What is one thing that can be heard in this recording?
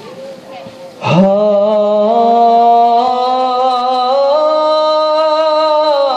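A group of young men sing together into microphones, holding long notes through loudspeakers.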